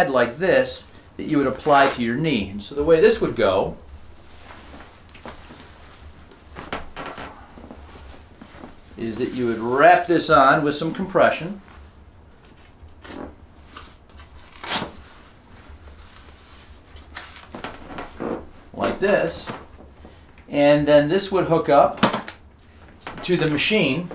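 A man speaks calmly and clearly close by, with pauses.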